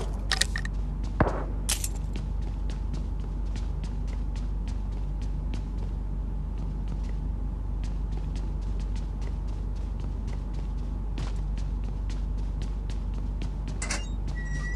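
Quick footsteps patter steadily on a hard floor.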